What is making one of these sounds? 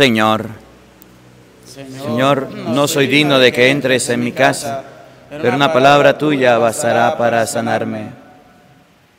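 A man speaks calmly into a microphone, heard through a loudspeaker in an echoing hall.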